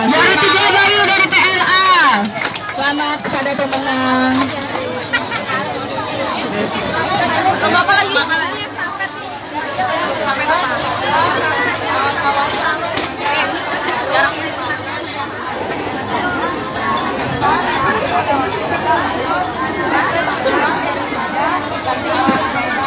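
A large crowd of women and men chatters and shouts loudly nearby, outdoors.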